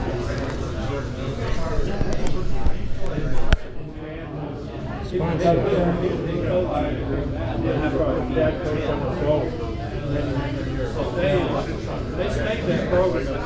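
A middle-aged man reads aloud close by.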